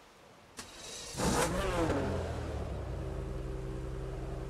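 A car engine starts and idles.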